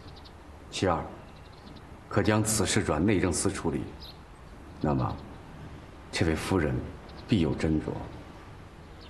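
A middle-aged man speaks calmly and closely, in short phrases.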